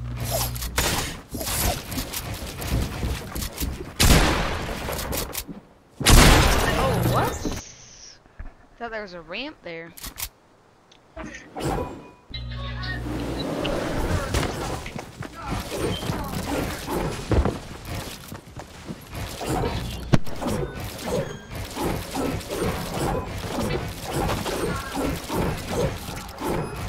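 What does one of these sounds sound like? Building pieces clack and thud rapidly into place.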